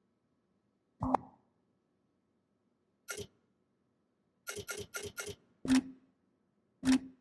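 Short electronic menu clicks and swishes sound as a game interface changes pages.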